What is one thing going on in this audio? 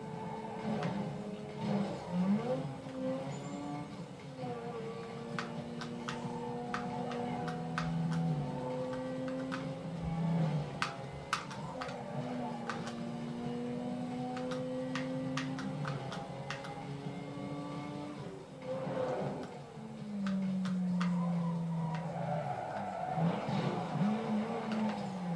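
A racing car engine roars and shifts gears.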